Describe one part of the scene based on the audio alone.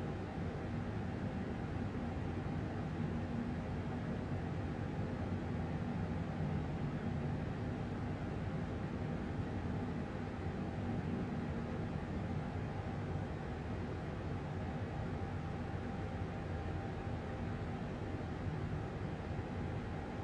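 A jet engine roars steadily with a low, constant hum.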